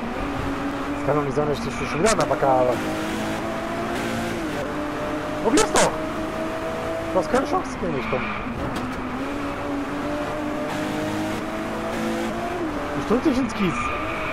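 Tyres screech through corners.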